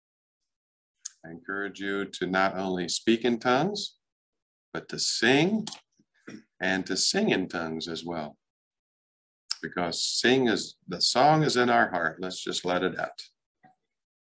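A middle-aged man speaks calmly and with animation into a microphone, heard over an online call.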